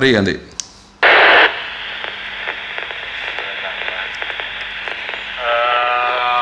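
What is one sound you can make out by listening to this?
A radio speaker gives a short burst of static, then a low hiss.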